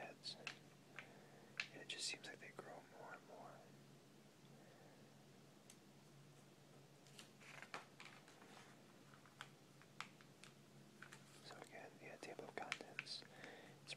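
Glossy magazine pages rustle and crinkle under a hand.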